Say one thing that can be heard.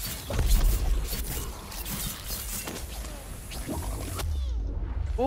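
Heavy impacts and blows thud and crack in quick succession.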